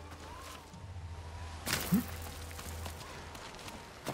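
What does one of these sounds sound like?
A person lands with a heavy thud after a jump.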